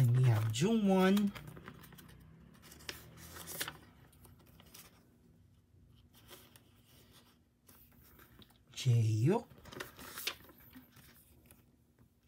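Cards slide in and out of plastic pockets.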